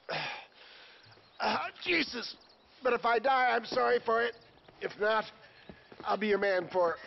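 An elderly man speaks in a worried, pleading voice.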